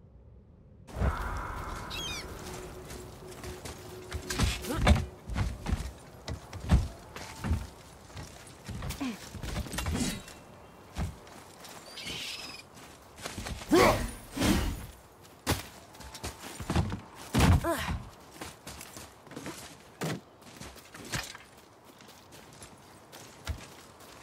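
Heavy footsteps thud on stone and wooden planks.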